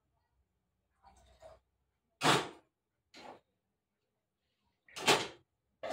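Metal pots and utensils clatter in short bursts.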